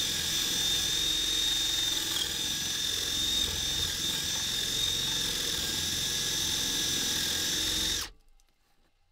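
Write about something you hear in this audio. A cordless drill whines steadily as it drives into wood.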